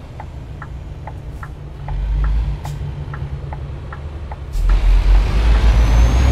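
A truck engine rumbles low and grows louder near the end.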